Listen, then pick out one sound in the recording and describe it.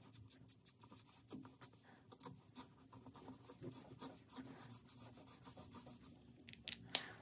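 A felt-tip marker squeaks and scratches rapidly across paper.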